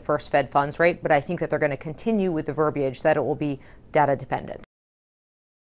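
A woman speaks calmly and clearly into a close microphone.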